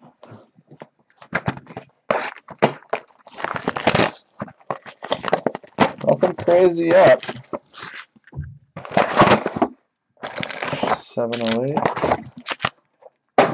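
Cardboard boxes slide and knock together as they are handled.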